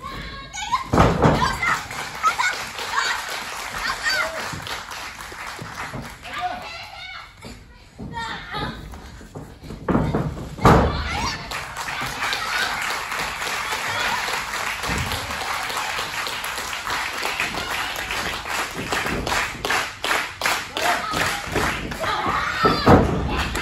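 A young woman shouts and cries out.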